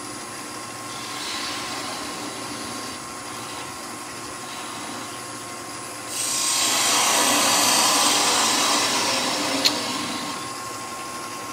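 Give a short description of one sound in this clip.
A hand tool scrapes against spinning wood with a hiss.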